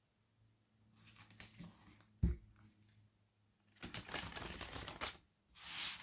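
Cards shuffle and rustle in hands, close by.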